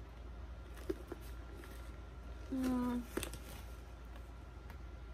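A leather bag is handled with soft knocks and rustles.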